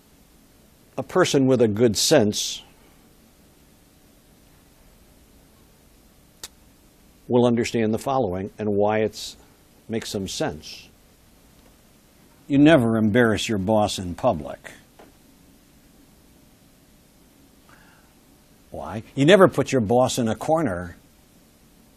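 An elderly man speaks with emphasis into a microphone, in bursts with pauses between.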